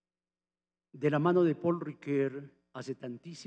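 An elderly man speaks calmly through a microphone and loudspeakers.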